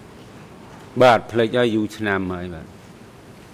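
A man answers briefly into a microphone.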